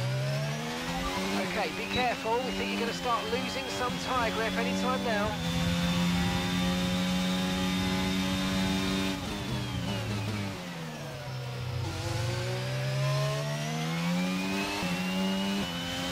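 Other racing cars whine past close by.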